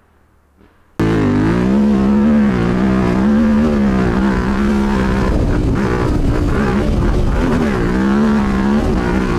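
A motorcycle engine hums and revs steadily up close.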